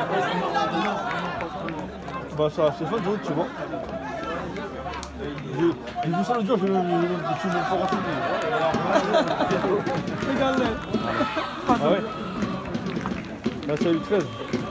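Young men shout and celebrate nearby.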